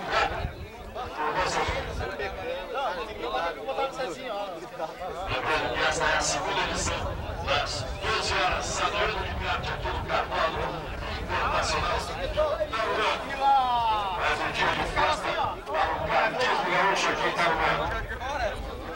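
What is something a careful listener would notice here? A crowd of men chatter and talk outdoors.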